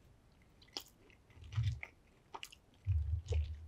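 Crispy fried food crackles as fingers pick it up.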